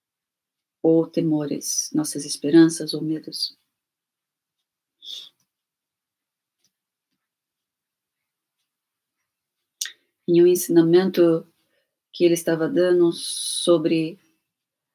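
A middle-aged woman speaks calmly and close to a microphone, with long pauses.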